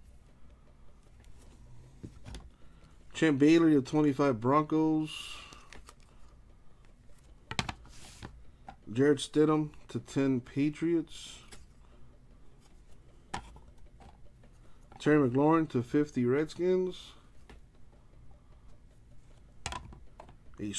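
Hard plastic card cases clack together.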